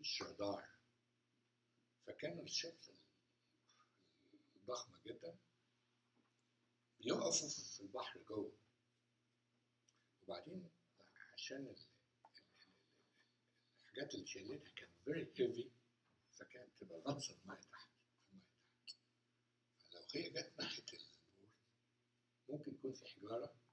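An elderly man speaks with animation through a small clip-on microphone, pausing often.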